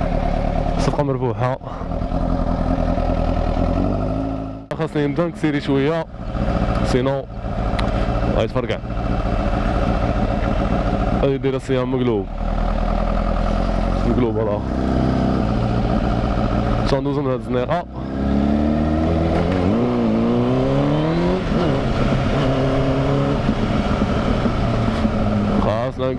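A motorcycle engine roars and revs up and down through the gears.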